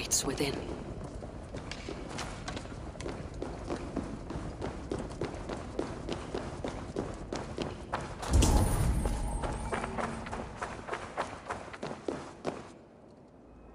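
Footsteps crunch quickly on a hard floor.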